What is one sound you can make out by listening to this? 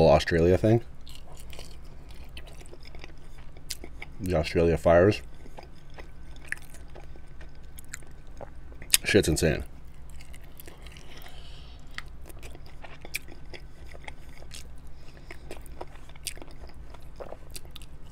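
A man chews chicken wings with wet smacking sounds close to a microphone.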